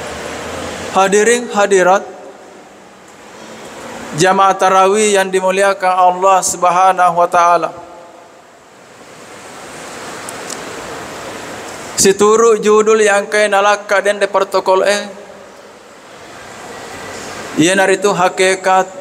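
An elderly man speaks calmly through a microphone, heard over loudspeakers in an echoing hall, in phrases with pauses.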